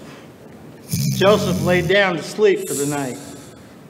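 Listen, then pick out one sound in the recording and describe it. A man speaks loudly on stage.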